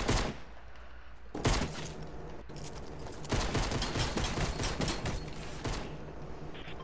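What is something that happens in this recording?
A pickaxe strikes repeatedly with sharp hits.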